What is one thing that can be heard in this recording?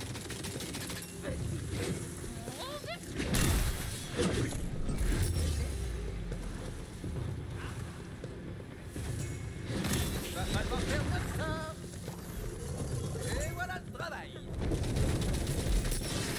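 Gunfire and blasts crack and boom from a game.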